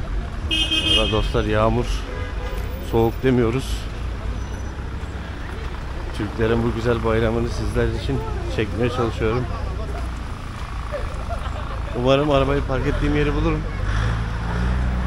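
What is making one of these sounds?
Adults passing by talk nearby in short bursts.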